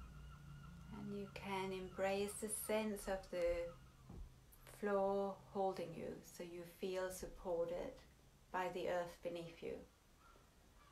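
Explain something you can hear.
A woman speaks calmly and clearly, close to the microphone.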